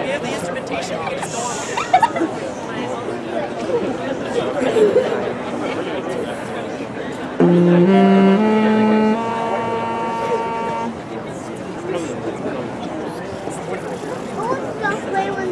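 Young people chatter and murmur outdoors.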